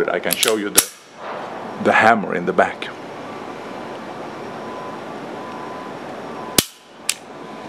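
A pistol's metal parts click sharply.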